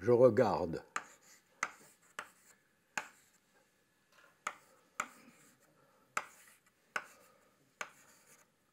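Chalk taps and knocks sharply against a blackboard.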